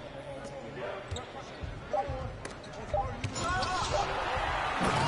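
A large crowd murmurs and then cheers louder in a big arena.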